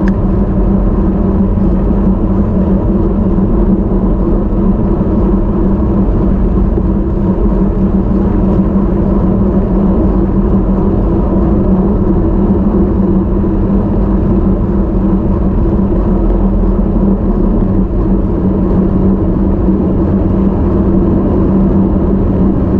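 A motorcycle engine drones steadily at cruising speed.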